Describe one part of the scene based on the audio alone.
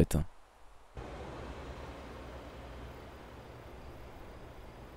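A mountain stream rushes down a steep slope in the distance.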